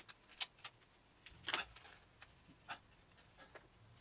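Scissors snip through tape.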